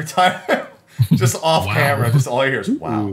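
A man laughs loudly through a microphone on an online call.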